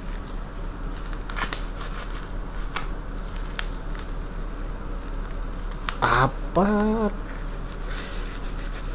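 A knife cuts through packing tape and plastic wrap.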